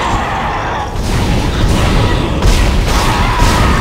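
A plasma weapon fires in loud bursts.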